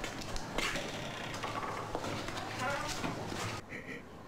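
An elderly woman laughs softly.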